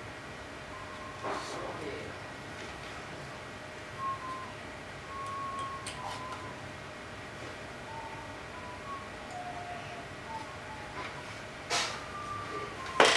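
An electronic toy plays short, beeping tones at changing pitches.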